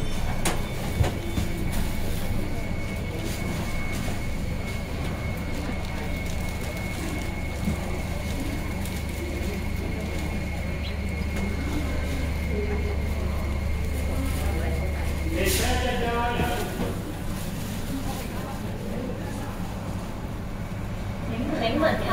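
A stopped train hums steadily with a low drone.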